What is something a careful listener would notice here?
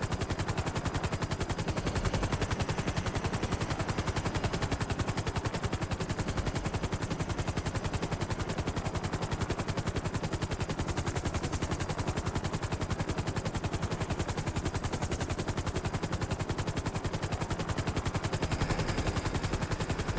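Helicopter rotor blades chop steadily and rapidly.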